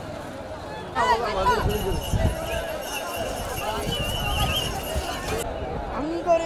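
Men whistle loudly.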